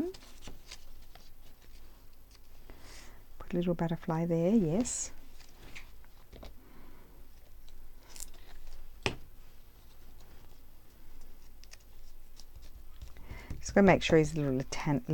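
Paper rustles and crinkles as it is handled.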